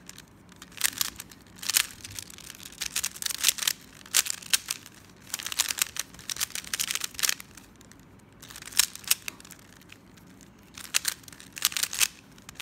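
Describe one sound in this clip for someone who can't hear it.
A plastic puzzle cube clicks and clacks in quick bursts as its layers are turned.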